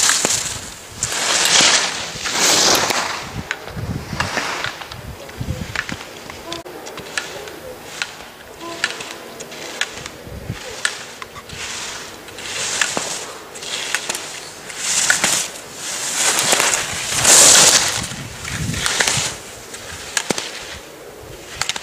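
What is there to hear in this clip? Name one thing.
Skis scrape and hiss over hard snow in quick turns.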